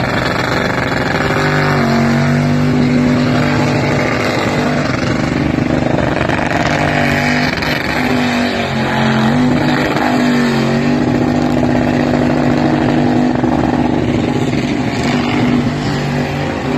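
Tyres screech as they spin on the pavement.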